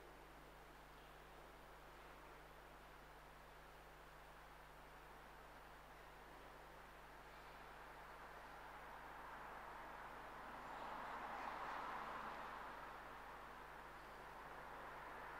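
A man murmurs prayers softly from a distance in a large echoing hall.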